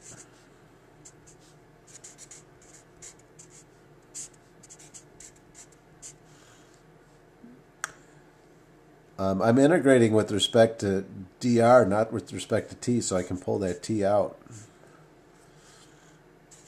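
A felt-tip marker squeaks and scratches across paper in short strokes.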